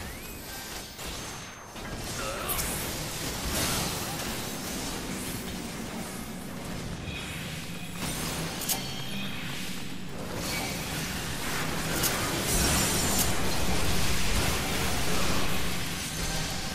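Magical spell effects whoosh and shimmer in bursts.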